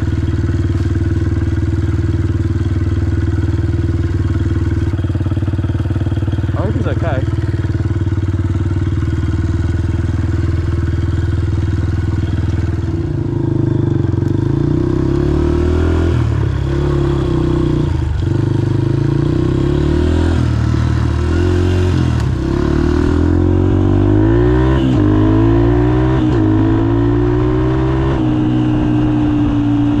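A dirt bike engine drones close by, rising and falling in pitch as it shifts gears.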